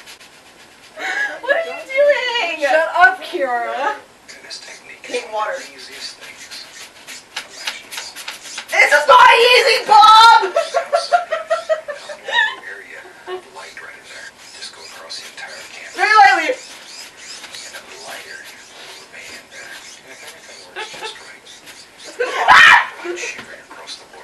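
Young women talk close by with animation.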